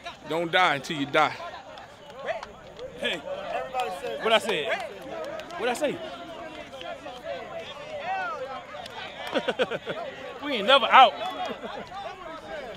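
A young man talks excitedly up close, outdoors.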